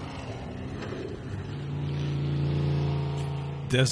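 A dune buggy's engine roars as it drives across sand.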